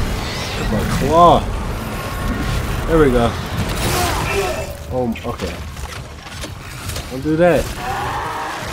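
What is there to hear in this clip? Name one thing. A young man exclaims and groans loudly into a microphone.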